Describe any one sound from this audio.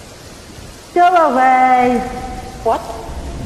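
A second woman sings along through a microphone.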